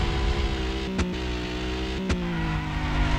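A car bumps hard against a barrier.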